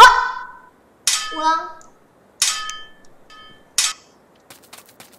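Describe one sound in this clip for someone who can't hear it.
A sword swings and strikes with sharp ringing hits.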